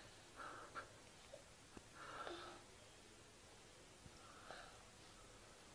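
A baby murmurs and sighs softly while drowsing.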